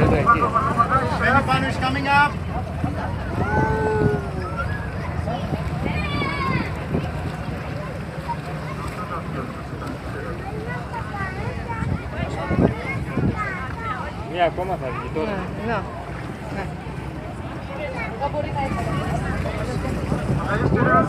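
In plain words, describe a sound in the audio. A crowd of people chatter and call out excitedly nearby.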